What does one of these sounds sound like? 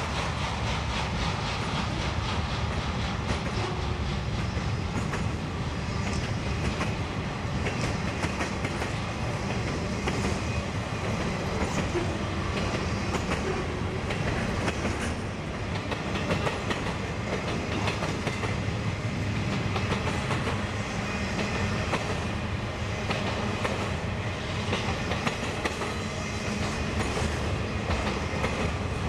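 A long freight train rumbles steadily past on the tracks.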